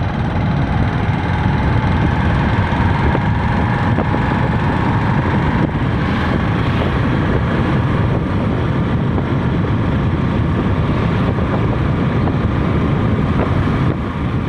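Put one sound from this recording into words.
Tyres rumble on asphalt.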